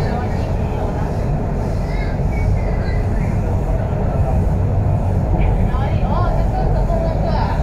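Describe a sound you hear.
A train rumbles steadily along an elevated track.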